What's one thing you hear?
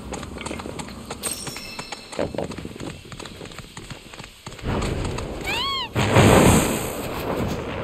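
Heavy bird feet run and thud over the ground.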